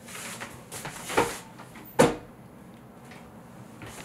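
A closet door opens with a soft knock.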